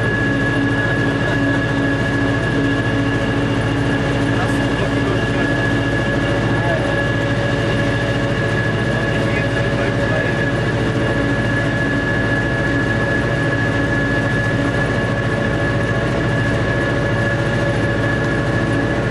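Train wheels hum on the rails.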